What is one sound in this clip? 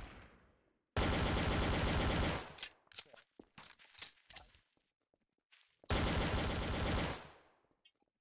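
A pistol fires a rapid string of shots.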